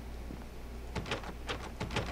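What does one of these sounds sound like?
A heavy wooden door rattles as someone tries to open it.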